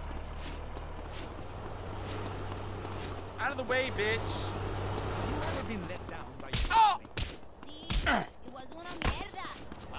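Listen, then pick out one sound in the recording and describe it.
Punches thud against bodies in a street fight.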